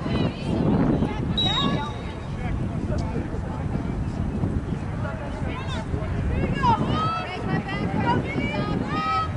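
Young women shout and call to each other from a distance outdoors.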